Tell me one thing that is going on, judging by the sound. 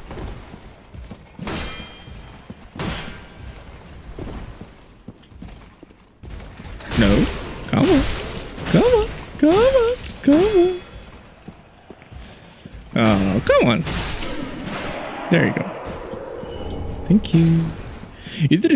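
Metal blades clash and strike in quick bursts.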